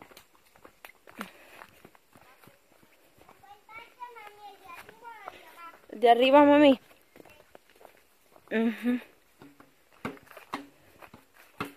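A small child's footsteps crunch on a dirt path.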